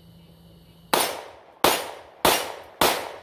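A pistol fires several sharp shots outdoors.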